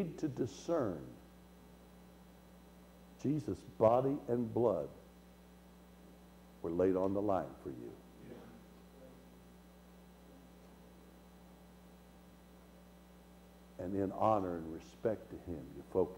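A middle-aged man speaks with animation through a microphone, pausing between phrases.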